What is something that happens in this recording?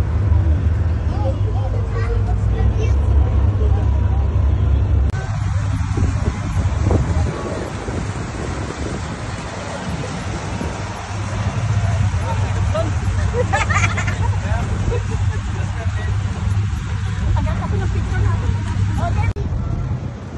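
A boat engine rumbles steadily and loudly.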